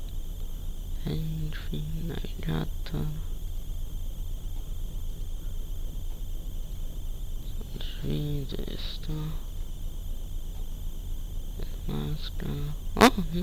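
A man talks calmly into a microphone in short bursts.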